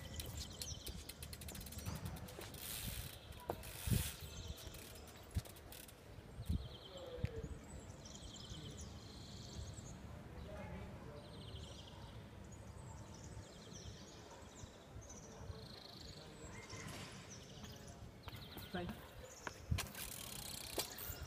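Bicycle tyres roll and crunch over pavement.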